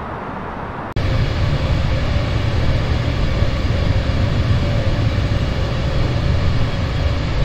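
A jet engine roars loudly with a high whine.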